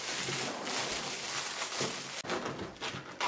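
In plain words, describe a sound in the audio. A plastic bag crinkles as bread is pulled out.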